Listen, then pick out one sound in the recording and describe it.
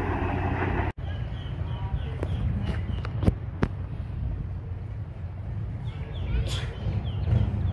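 A train engine rumbles in the distance.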